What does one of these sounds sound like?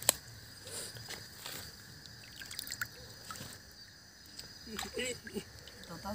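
Water splashes as a fish is handled.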